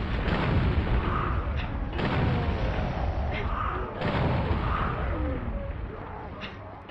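A gas bomb bursts with a loud, rushing hiss.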